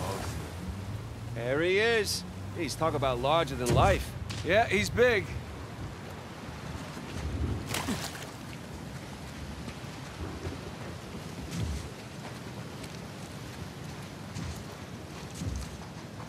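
Surf washes onto a beach.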